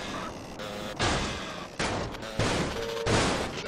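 A motorbike crashes into wooden crates with loud thuds.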